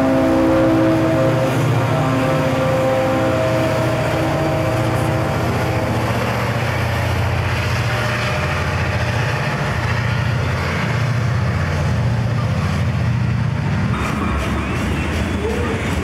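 Diesel locomotive engines rumble loudly close by.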